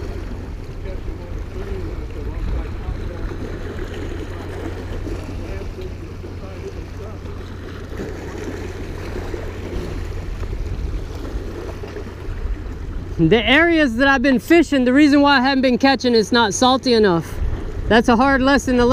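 Small waves splash against rocks.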